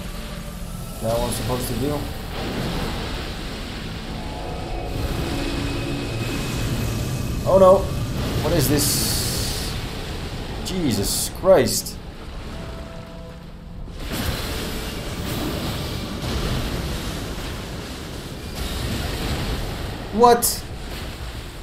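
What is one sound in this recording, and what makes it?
A young man talks with animation through a close microphone.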